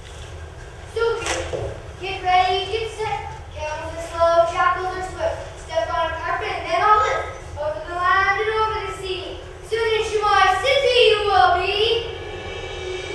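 Young performers sing together on stage.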